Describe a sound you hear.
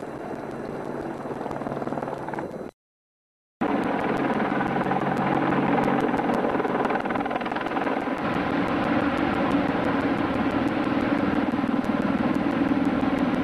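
An Apache attack helicopter's rotor thumps as it passes low overhead.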